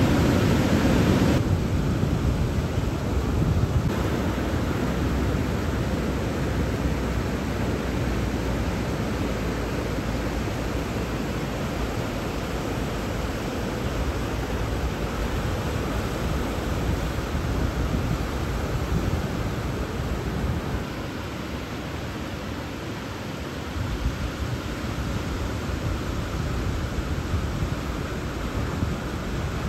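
Ocean waves crash and roll in with a steady rushing roar of surf.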